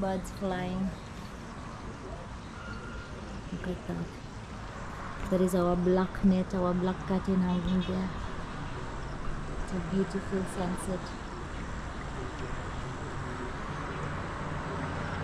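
Wind blows and rustles through pine branches outdoors.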